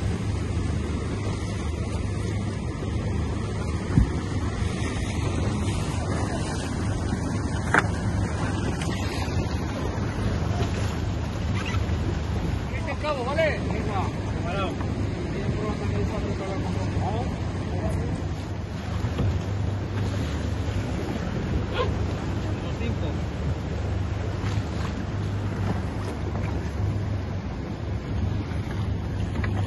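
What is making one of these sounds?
Waves splash and slap against a rubber boat hull.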